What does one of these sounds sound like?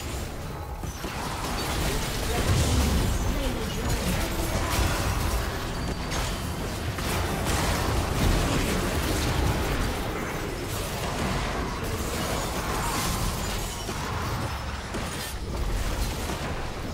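Magic spells whoosh, burst and crackle in a hectic fantasy battle.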